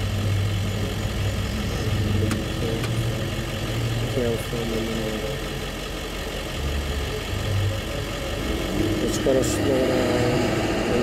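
Cars and trucks drive past across a busy intersection.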